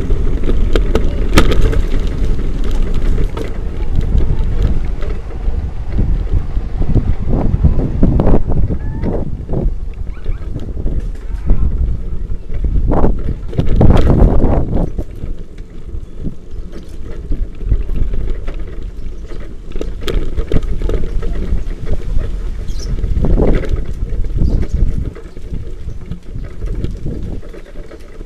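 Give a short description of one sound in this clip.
Bicycle tyres roll and rattle over a rough road.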